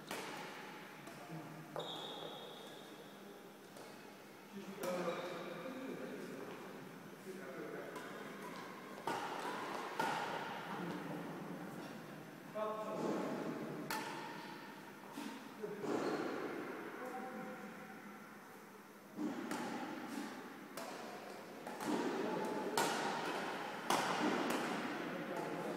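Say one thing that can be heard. Footsteps squeak and patter on a hard sports floor.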